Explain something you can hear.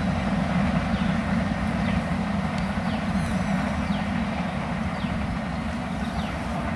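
A train rumbles along the tracks in the distance.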